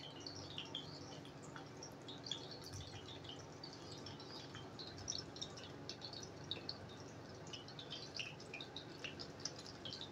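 Meat sizzles and crackles in hot oil.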